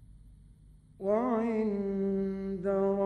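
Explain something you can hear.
An elderly man chants in a long, drawn-out melodic voice through a recording.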